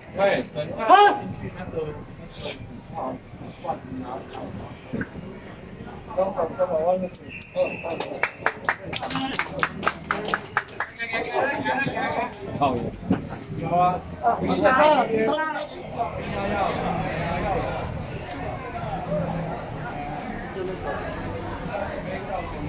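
A crowd of men and women talks and shouts all around, close by, outdoors.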